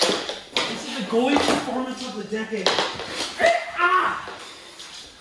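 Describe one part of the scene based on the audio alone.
Two young women shout and cry out with excitement nearby.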